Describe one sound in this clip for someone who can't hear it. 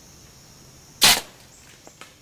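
A bow releases an arrow with a sharp snap.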